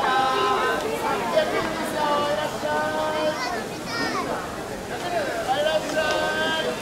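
A crowd of men and women chatter nearby outdoors.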